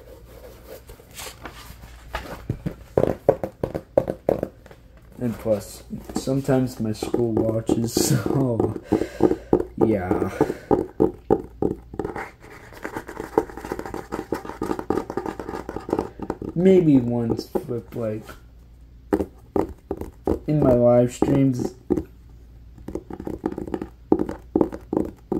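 Fingernails tap on a hardcover book.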